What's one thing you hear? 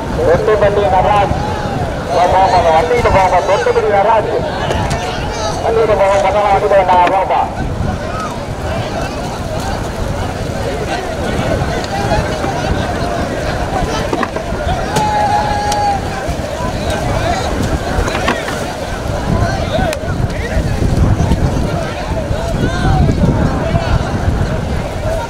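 A crowd of men chant and shout loudly outdoors.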